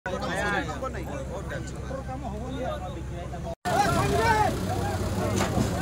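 A crowd of men talk and shout over each other nearby, outdoors.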